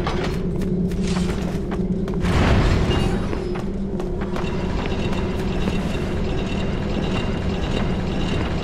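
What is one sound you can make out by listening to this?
Heavy footsteps thud.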